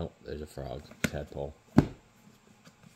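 A heavy book thuds shut.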